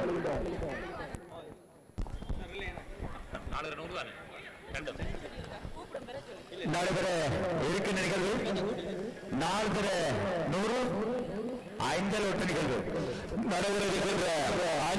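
A crowd chatters softly outdoors.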